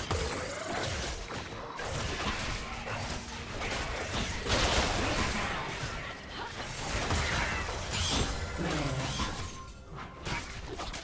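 Magic spells whoosh and crackle in a fast game fight.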